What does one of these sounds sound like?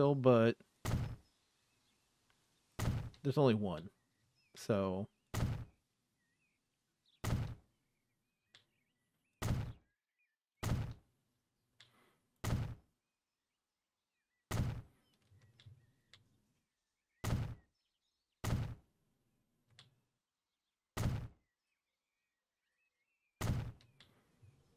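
A short building thud sounds again and again as road pieces are laid.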